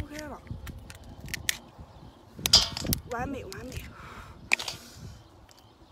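A crab shell cracks and crunches as it is broken open.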